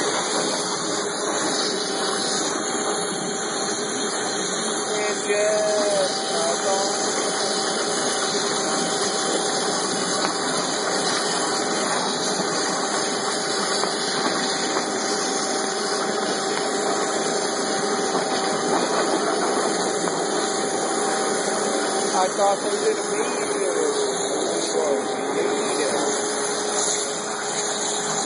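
A large machine hums and hisses steadily nearby.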